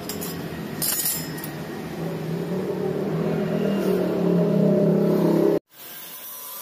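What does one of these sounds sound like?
Metal hinges clink and rattle as a hand rummages through them.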